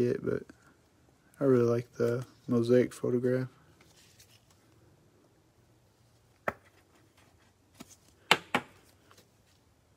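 Plastic card sleeves click and rustle as they are handled.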